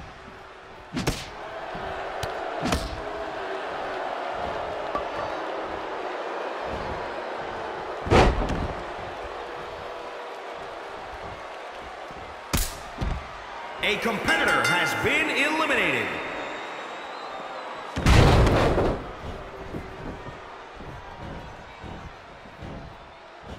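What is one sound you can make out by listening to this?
A crowd cheers and roars in a large echoing arena.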